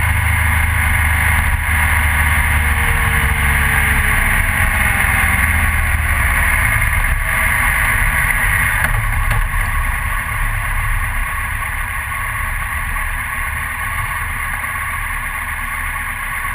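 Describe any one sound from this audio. A motorcycle engine hums steadily and slows down.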